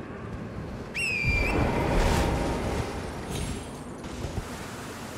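A heavy door creaks and grinds open.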